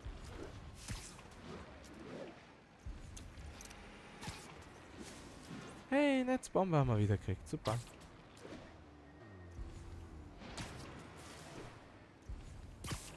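Webs shoot out with short, sharp snaps, again and again.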